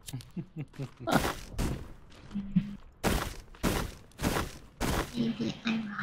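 An axe strikes with sharp knocks.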